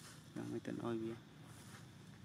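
A monkey makes short, soft calls.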